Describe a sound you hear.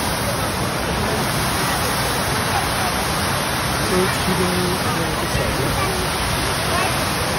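Young women talk nearby outdoors.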